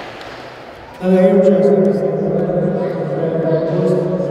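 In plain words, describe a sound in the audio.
A middle-aged man speaks loudly through a microphone in a large echoing hall.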